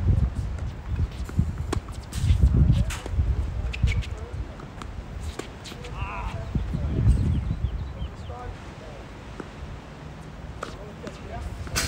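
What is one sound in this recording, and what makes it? Shoes squeak and scuff on a hard court.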